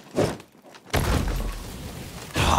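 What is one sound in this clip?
A wooden barrel smashes with a loud crash.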